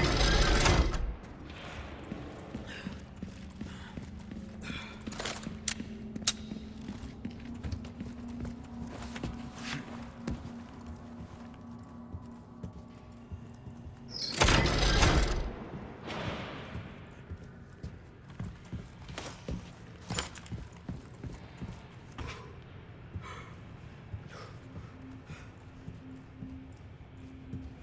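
Footsteps tap on stone and wooden floors.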